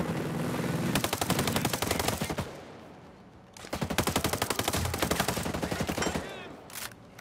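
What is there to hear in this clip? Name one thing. Rifle fire rattles in rapid bursts close by.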